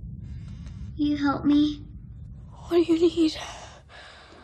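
A young girl whimpers and cries out in fear.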